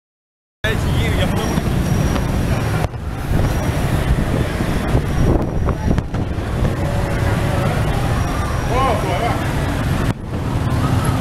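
Motorbike engines rumble in busy street traffic.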